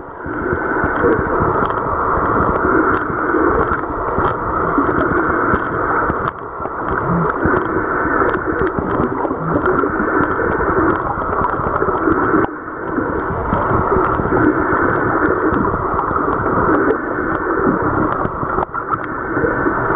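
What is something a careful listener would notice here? A dugong crunches and tears seagrass underwater with sharp crackling clicks.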